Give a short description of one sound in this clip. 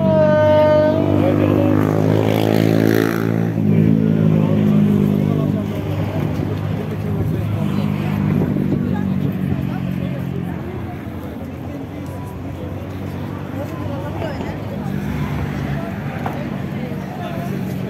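A suitcase's wheels rattle over pavement.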